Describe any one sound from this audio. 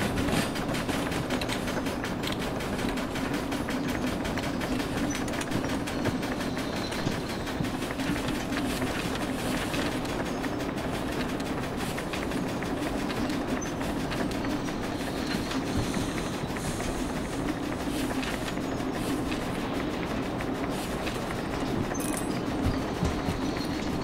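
A steam locomotive rumbles and clatters steadily along the track.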